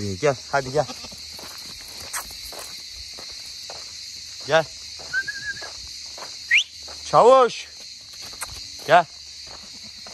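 A young goat bleats loudly several times close by.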